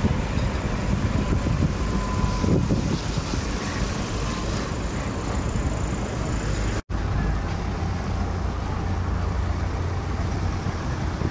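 Car engines hum in slow traffic.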